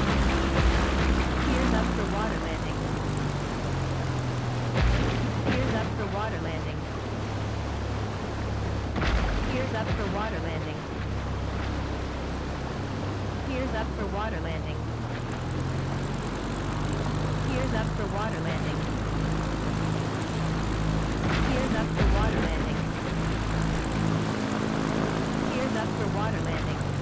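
Water splashes and sprays under floats skimming the surface.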